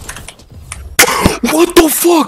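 A young man shouts excitedly close to a microphone.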